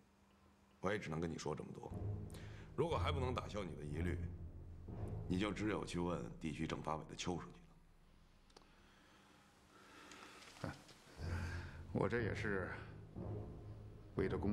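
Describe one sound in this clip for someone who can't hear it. An older man speaks gravely and calmly, close by.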